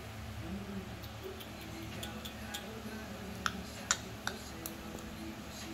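A small dog chews and crunches on a treat close by.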